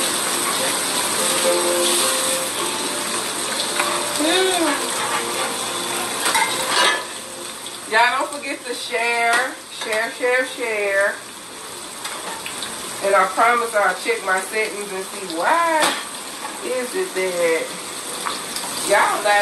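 Food sizzles and crackles in a frying pan.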